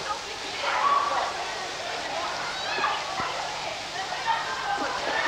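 Water from a fountain sprays and splashes steadily into a pool in an echoing indoor hall.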